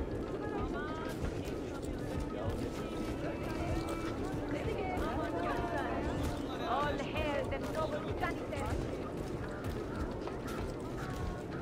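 Footsteps tread quickly across roof tiles.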